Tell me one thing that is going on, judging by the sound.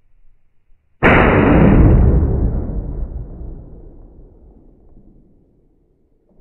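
A rifle fires a single loud shot that booms and echoes away outdoors.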